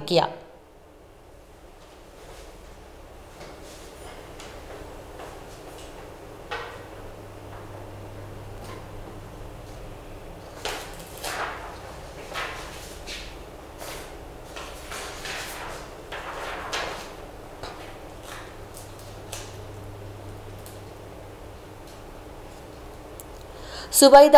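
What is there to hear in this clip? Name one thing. A woman reads out news calmly into a microphone.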